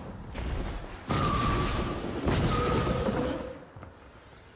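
A loud energy blast bursts and crackles.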